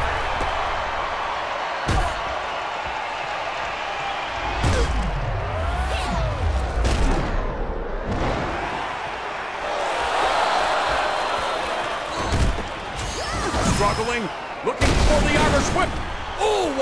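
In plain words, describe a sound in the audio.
A crowd cheers steadily.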